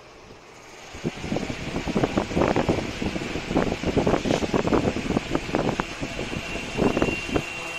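A small electric fan whirs and rattles.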